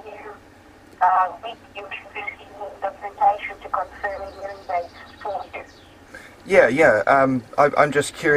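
A middle-aged man talks close by, with animation.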